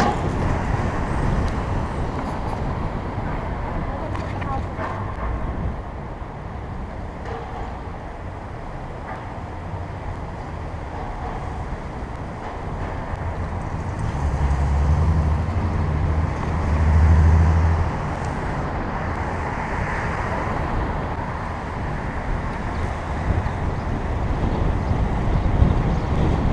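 Cars drive along a city street ahead in traffic.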